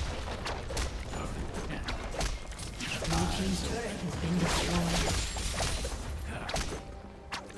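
Magic blasts and sword strikes crackle and thud in a fast fight.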